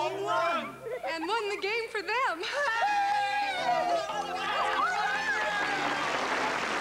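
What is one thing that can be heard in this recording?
A young woman sings.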